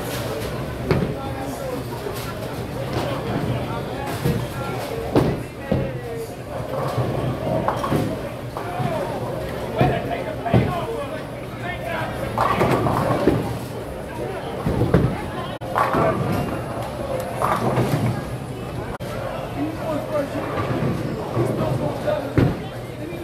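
Bowling balls roll down lanes and crash into pins in a large echoing hall.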